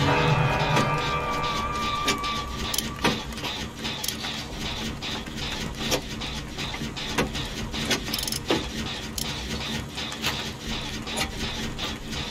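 Metal parts clank and rattle as a machine is repaired by hand.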